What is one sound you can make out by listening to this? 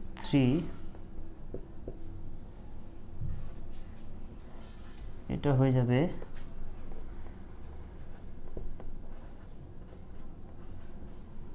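A marker squeaks and scratches on a board.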